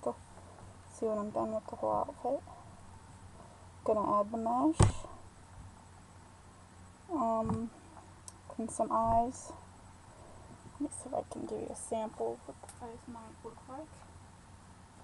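A young woman speaks calmly, close to a microphone.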